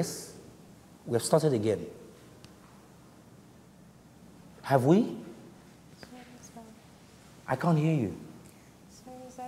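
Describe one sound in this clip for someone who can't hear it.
A young woman talks briefly.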